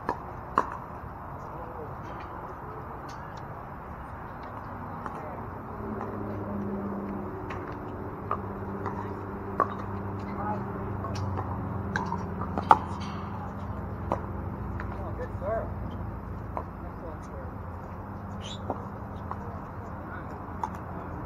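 Paddles smack a plastic ball back and forth in sharp pops.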